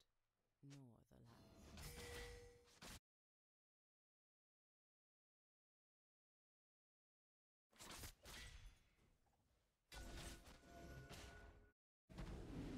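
Fighting game characters' spell blasts and hits sound in quick bursts.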